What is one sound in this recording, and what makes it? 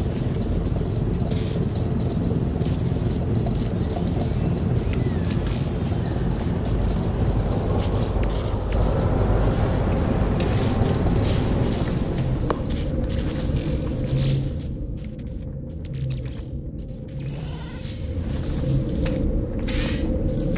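A low hum drones steadily.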